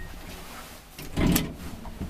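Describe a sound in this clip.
A lift button clicks as it is pressed.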